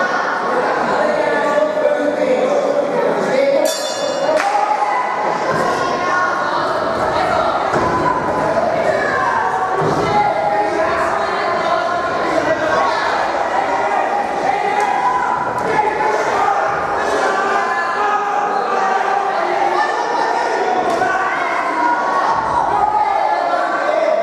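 A crowd shouts and cheers in an echoing hall.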